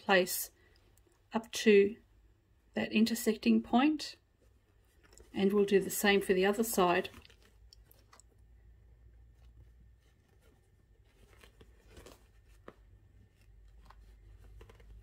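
Fabric rustles softly as it is folded and handled.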